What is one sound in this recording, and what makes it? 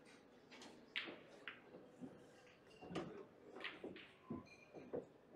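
Pool balls click against each other and roll across the table.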